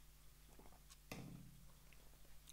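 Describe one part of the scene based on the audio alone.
A mug is set down on a table with a knock.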